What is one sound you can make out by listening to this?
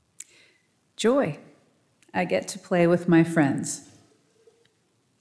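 A woman sings a few drawn-out words through a microphone.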